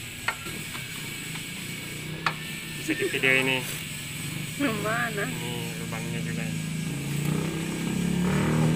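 A ratchet wrench clicks as it turns a metal bolt.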